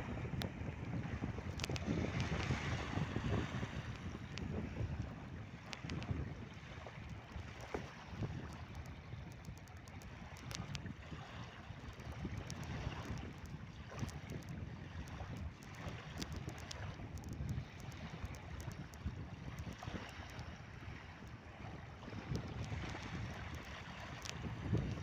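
Small waves lap gently on a beach.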